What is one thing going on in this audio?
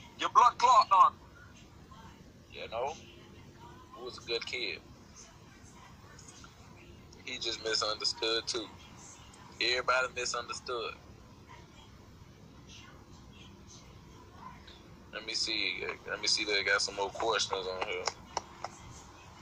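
A young man talks casually and close into a phone microphone, in short bursts.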